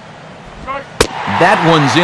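A baseball smacks into a catcher's glove.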